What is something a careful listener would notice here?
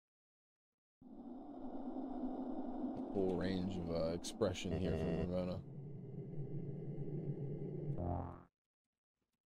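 Game music plays with a swelling melody.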